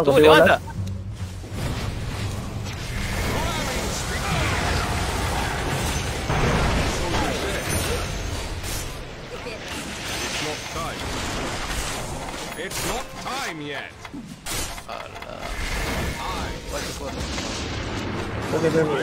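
Magic blasts whoosh and crash in a video game.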